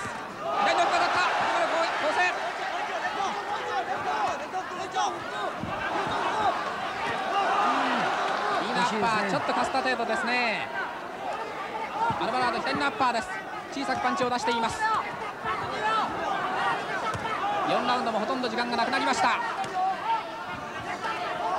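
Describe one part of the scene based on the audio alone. A crowd murmurs and cheers.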